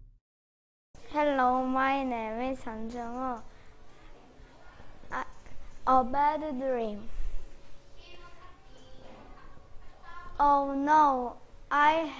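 A young boy speaks clearly and brightly close to the microphone.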